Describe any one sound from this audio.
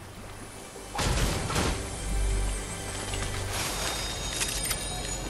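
A treasure chest opens with a bright, jingling chime.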